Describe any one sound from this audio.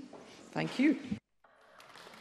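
A man speaks briefly through a microphone in a large hall.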